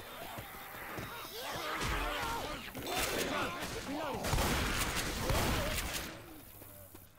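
A shotgun fires loud blasts.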